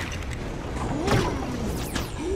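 A fiery blast bursts with a whoosh.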